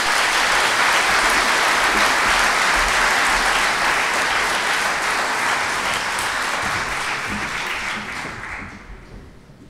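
A large audience applauds in an echoing hall and the applause slowly fades.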